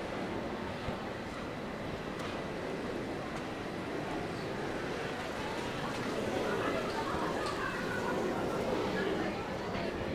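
Street noise murmurs steadily outdoors.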